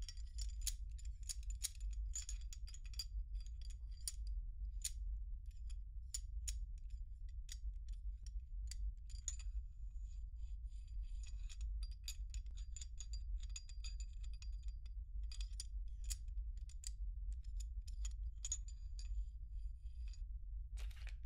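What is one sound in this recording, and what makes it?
Small metal parts click and tap close by.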